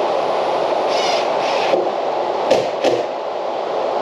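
A cordless drill whirs in short bursts as it drives screws into metal.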